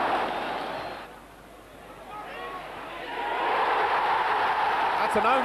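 A large stadium crowd roars, dips and then swells into a loud cheer.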